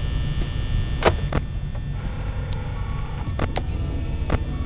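A monitor clicks sharply as it switches views.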